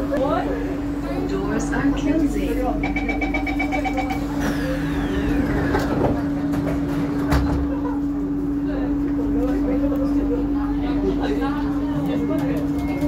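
A train hums steadily.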